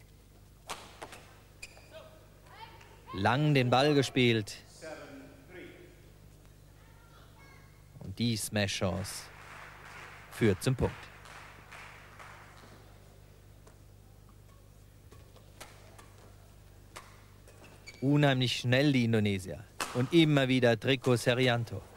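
A racket strikes a shuttlecock with sharp pops in an echoing hall.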